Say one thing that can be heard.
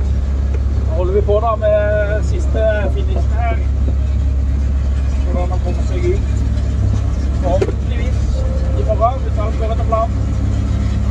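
A man talks briefly in short bursts through a headset microphone.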